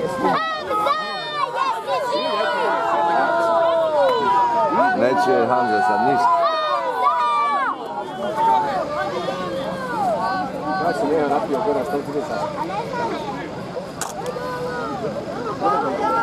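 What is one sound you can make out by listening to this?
A large crowd of men shouts and cheers outdoors.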